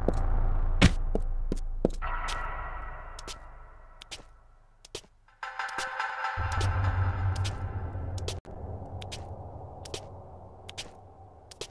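Hands and feet clatter on the rungs of a wooden ladder.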